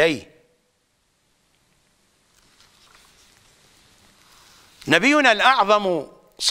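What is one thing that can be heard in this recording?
An elderly man speaks calmly and clearly into a microphone.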